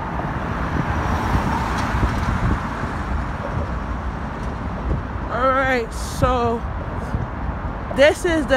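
A passenger car drives away along a concrete road.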